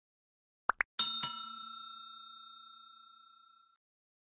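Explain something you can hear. A bright chime rings and slowly fades.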